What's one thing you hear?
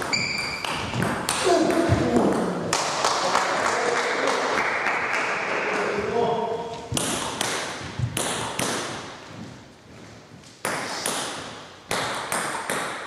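A table tennis ball clicks sharply back and forth off paddles and the table in an echoing hall.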